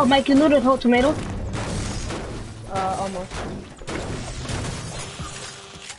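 A pickaxe strikes metal with sharp clangs.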